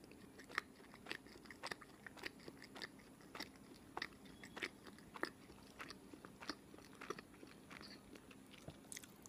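A person chews crunchy fried food close to a microphone, with crisp crackling bites.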